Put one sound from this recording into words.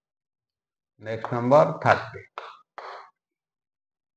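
A middle-aged man speaks briefly and calmly nearby.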